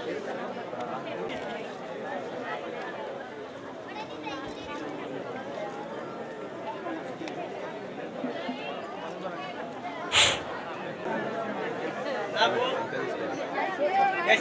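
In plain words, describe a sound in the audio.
A crowd of men chatters nearby.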